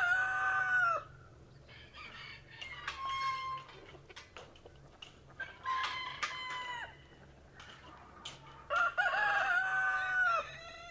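A hen squawks loudly and repeatedly nearby.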